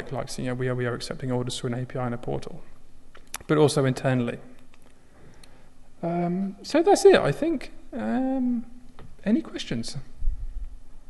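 A young man speaks calmly into a microphone in a large hall.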